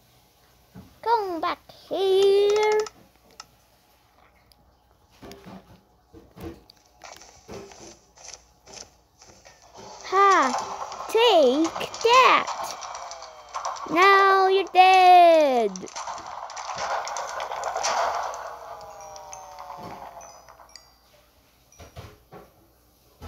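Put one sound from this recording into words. A handheld game console plays sweeping, chiming sound effects through its small speaker.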